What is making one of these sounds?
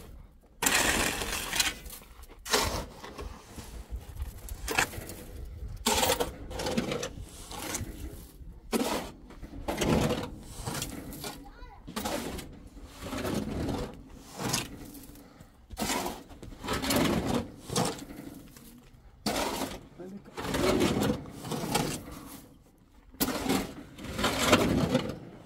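A shovel scrapes and scoops sand.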